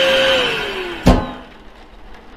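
A bin lid shuts with a thud.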